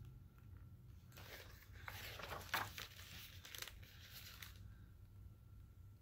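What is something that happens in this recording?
Pages of a book rustle as they turn.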